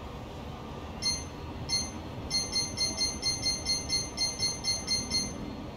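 A menu cursor clicks with short electronic blips, first slowly and then in a quick series.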